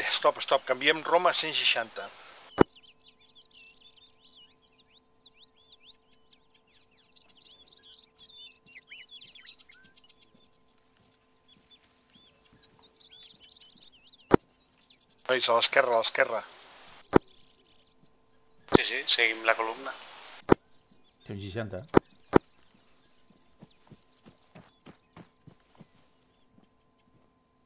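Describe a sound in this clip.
Footsteps swish and rustle through tall grass.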